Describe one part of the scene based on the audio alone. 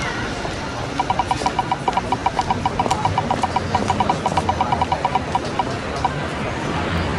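A spinning prize wheel ticks rapidly, then slows and stops.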